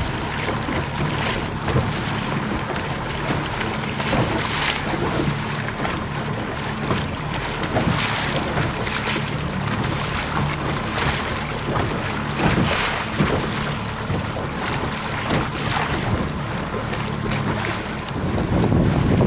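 Waves slap and splash against a boat's hull.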